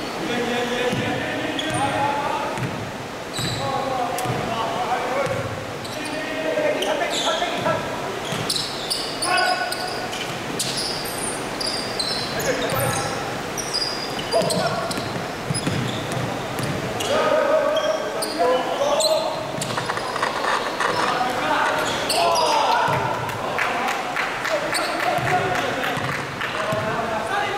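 Spectators talk and call out nearby.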